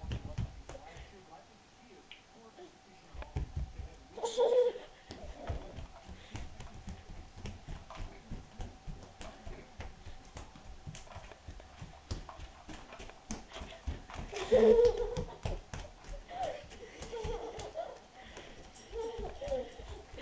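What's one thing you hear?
Small bare feet patter on a wooden floor.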